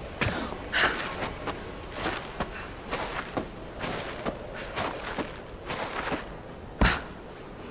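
A climber slides down a rope line.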